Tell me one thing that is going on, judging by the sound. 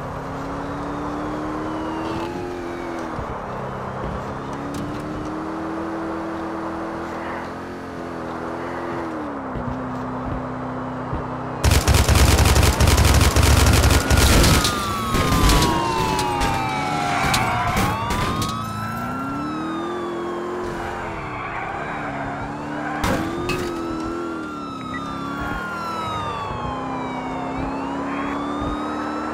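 Police sirens wail, sweeping up and down.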